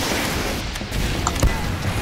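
A shotgun fires with a loud bang.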